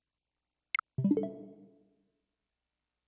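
A soft electronic chime plays once.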